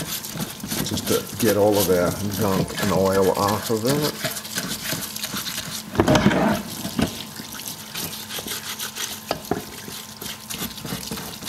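Liquid splashes and drips into a basin.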